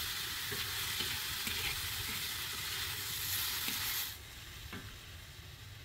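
A metal spatula scrapes against a pan.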